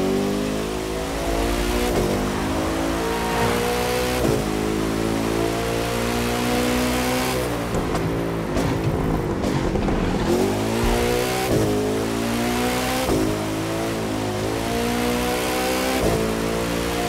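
A sports car engine roars and revs up through the gears, dropping in pitch at each gear change.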